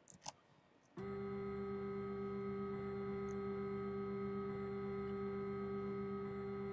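An engine drones steadily at an even pitch.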